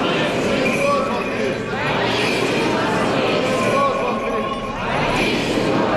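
Small bells on a swinging censer jingle.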